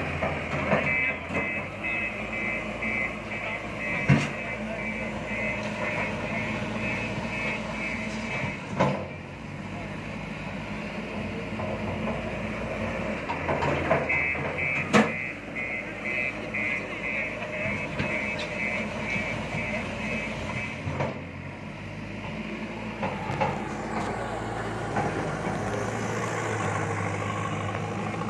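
A heavy diesel engine rumbles and revs close by.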